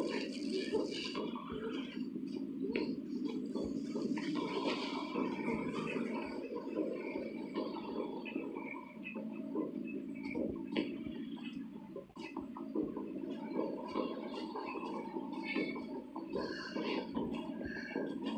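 Footsteps thud quickly on a hard floor.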